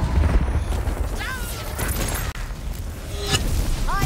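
An electric blast crackles and zaps.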